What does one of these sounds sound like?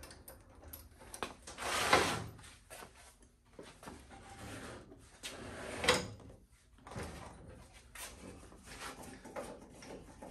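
Metal parts of a motorcycle clank and knock close by.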